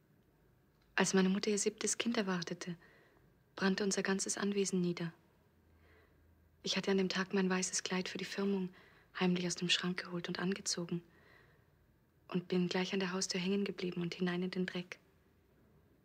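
A young woman speaks calmly up close, in short phrases.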